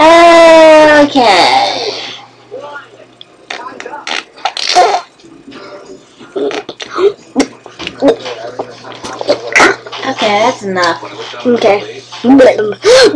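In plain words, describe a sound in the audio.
A young boy talks and makes silly noises close to the microphone.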